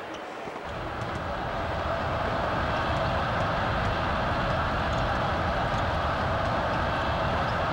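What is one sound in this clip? A basketball is dribbled on a hardwood floor.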